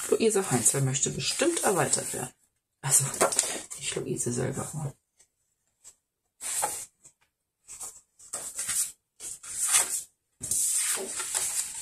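Loose papers rustle and slide as they are shuffled.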